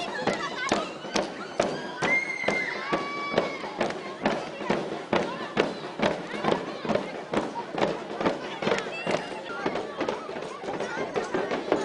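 Girls clap their hands.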